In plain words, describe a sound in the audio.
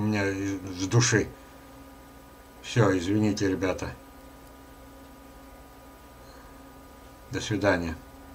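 An elderly man talks calmly in short phrases, heard through a webcam microphone.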